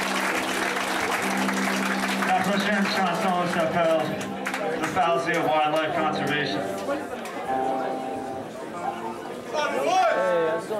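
A band plays loudly in an echoing hall.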